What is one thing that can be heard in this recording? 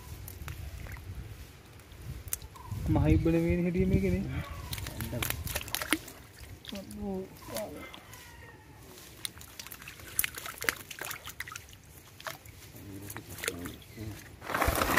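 A shallow stream trickles and gurgles.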